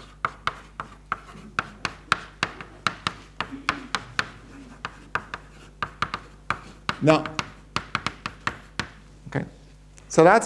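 Chalk taps and scrapes quickly on a blackboard.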